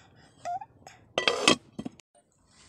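A metal lid clanks against a pot.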